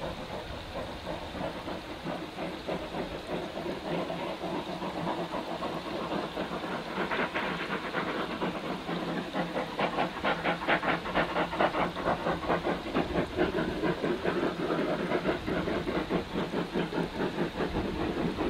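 A steam locomotive chuffs rhythmically in the distance, growing louder.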